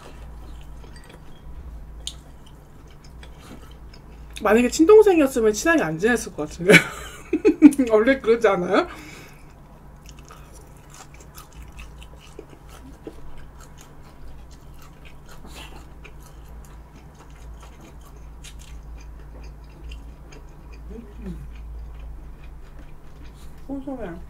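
A young woman chews food close to a microphone.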